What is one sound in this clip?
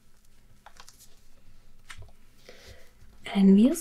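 Paper pages rustle softly as hands handle a book.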